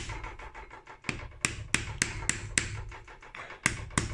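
A mallet taps repeatedly on metal.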